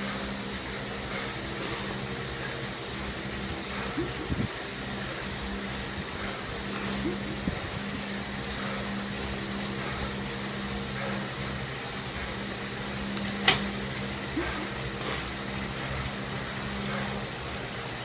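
An indoor bike trainer whirs steadily under pedalling.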